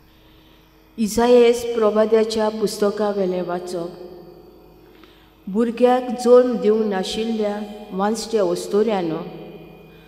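A woman reads out calmly through a microphone in an echoing hall.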